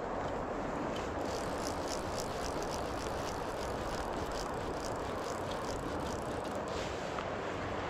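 A fishing reel clicks as line is pulled in.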